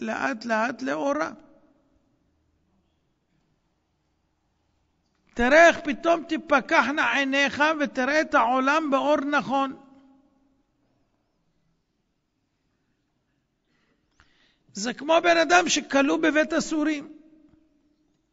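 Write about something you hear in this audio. A middle-aged man speaks with animation into a microphone, with long pauses between phrases.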